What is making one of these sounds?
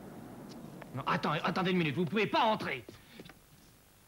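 A young man speaks tensely and urgently, close by.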